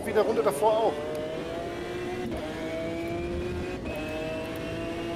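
A racing car engine roars at high revs, climbing in pitch and dropping briefly at each gear change.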